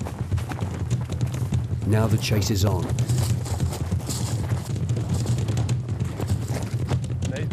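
Footsteps crunch quickly over dry ground as several people run.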